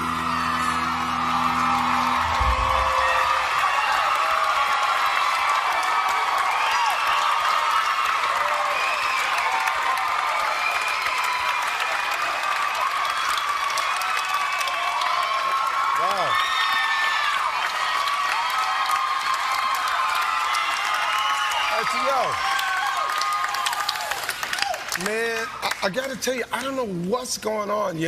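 A large crowd cheers, screams and applauds loudly in a big hall.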